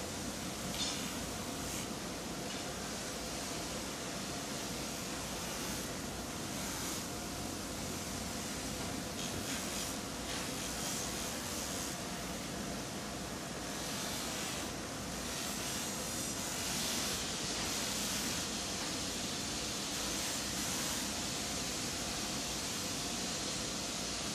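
A large grinding wheel grinds a metal part held against it.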